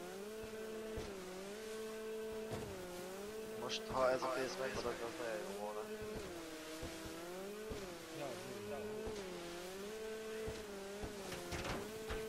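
A jet ski engine hums and revs up and down.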